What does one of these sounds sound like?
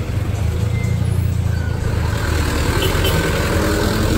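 A truck engine idles and drives past.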